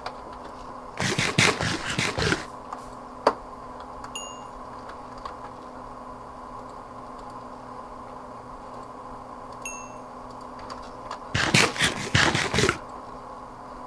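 A game character munches food with crunchy chewing sounds.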